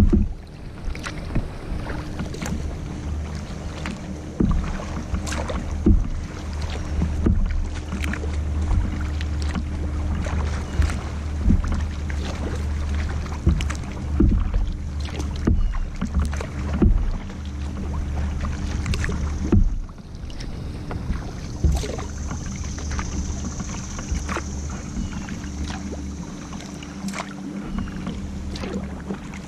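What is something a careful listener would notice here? A kayak paddle splashes and dips into water in a steady rhythm.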